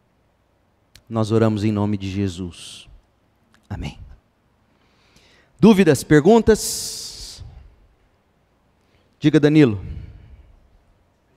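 A man preaches with animation through a microphone, in an echoing hall.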